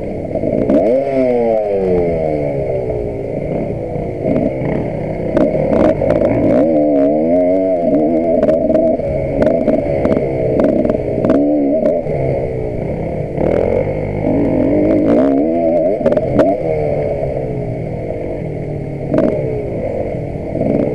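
Another dirt bike engine buzzes a little way ahead.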